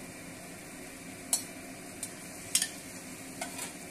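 Potato chunks tumble into a metal wok.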